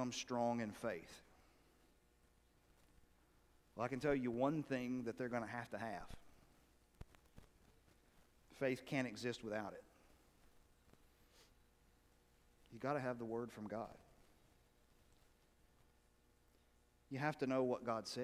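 A middle-aged man speaks calmly in short phrases with pauses, in a large echoing hall.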